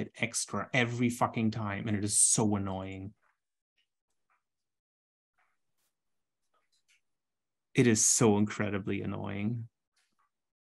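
A man talks through an online call microphone, in two short bursts with a pause between.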